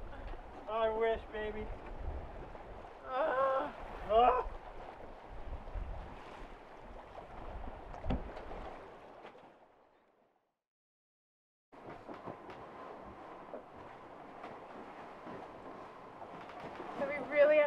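Waves wash against a boat's hull.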